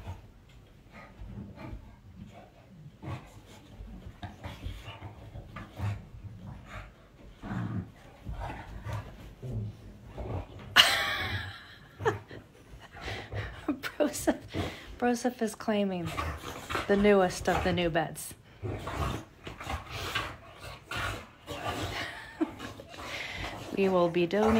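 Dogs growl and snuffle playfully close by.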